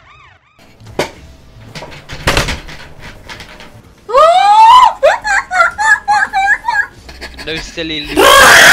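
A boy shouts and screams excitedly into a headset microphone.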